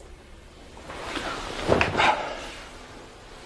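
A man drops heavily onto a soft bed.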